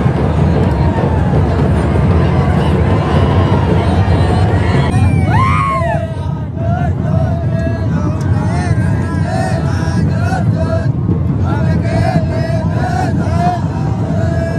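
A large outdoor crowd roars and cheers loudly.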